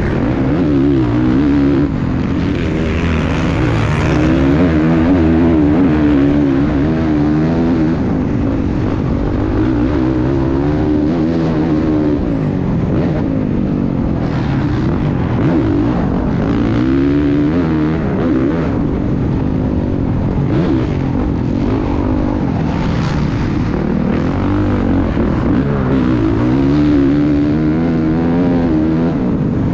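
A dirt bike engine revs up and down close by, rising and falling in pitch.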